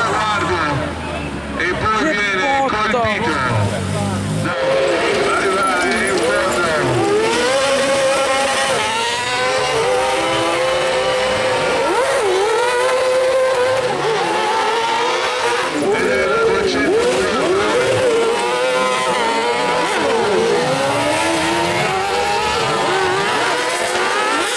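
Several racing engines roar and rev up and down close by.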